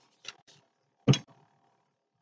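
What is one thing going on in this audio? A brush is set down on a table with a knock.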